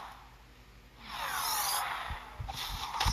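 A magical burst whooshes and shimmers.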